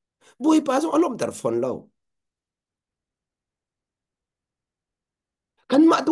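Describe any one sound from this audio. A man speaks calmly and warmly into a microphone over an online call.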